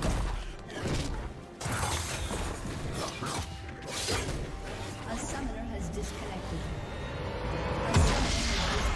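Spell effects zap and clash in a fast game fight.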